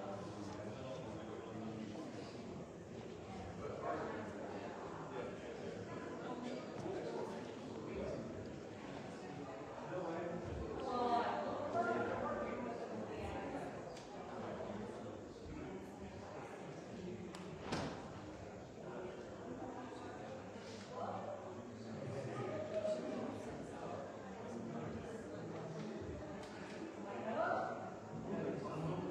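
A man speaks calmly and steadily, close by, in a room with a slight echo.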